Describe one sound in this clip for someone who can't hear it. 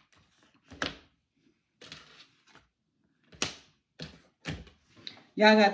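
Cards shuffle and slap onto a table close by.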